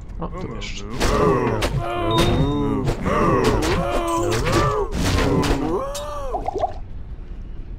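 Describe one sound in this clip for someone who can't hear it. Blades clash and strike in a rapid fight.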